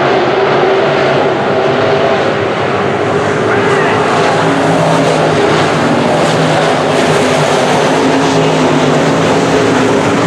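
A crowd of spectators murmurs and cheers nearby.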